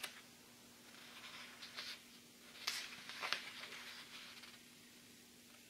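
Paper pages rustle softly as a book's pages are turned.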